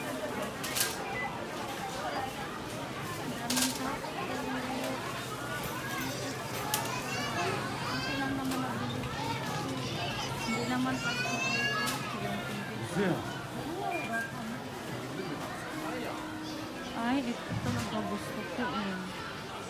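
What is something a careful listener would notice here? A crowd of shoppers chatters in a busy indoor space.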